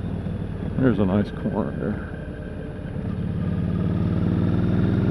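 A motorcycle engine hums steadily and revs up slightly toward the end.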